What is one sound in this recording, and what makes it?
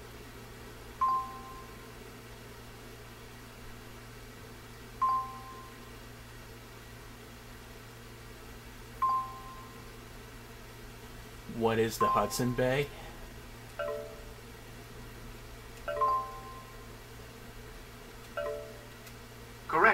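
Short electronic beeps sound at even intervals from a game.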